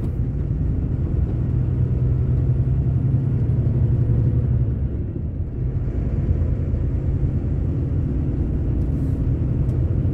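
A vehicle engine hums steadily while driving along a road.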